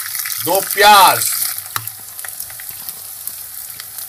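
Sliced onions drop into a sizzling pan.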